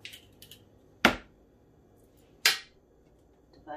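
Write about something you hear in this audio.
An egg is tapped and cracked against a hard surface.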